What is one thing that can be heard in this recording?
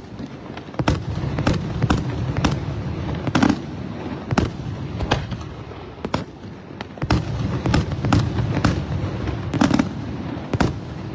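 Fireworks crackle and fizz overhead.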